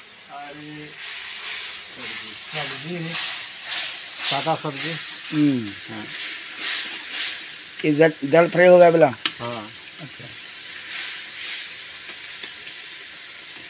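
Oil sizzles and crackles in a hot pan.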